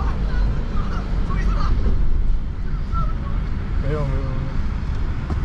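A car rumbles steadily while driving.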